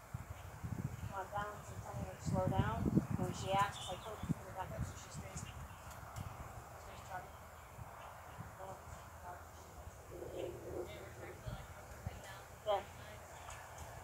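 A woman speaks calmly to a horse nearby.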